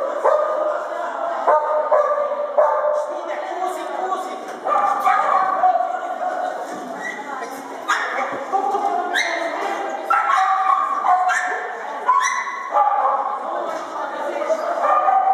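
A man calls out short commands loudly in a large echoing hall.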